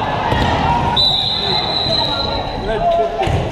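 A referee blows a long, steady whistle.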